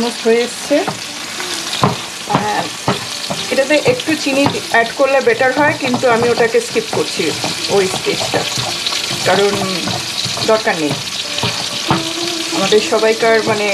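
A spatula scrapes and stirs food against a frying pan.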